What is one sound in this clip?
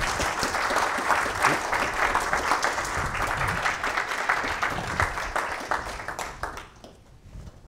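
An audience claps and applauds in a room.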